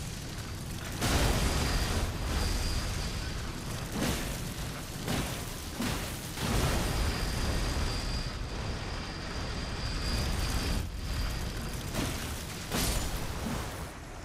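Weapon blows and blasts strike with sharp bangs.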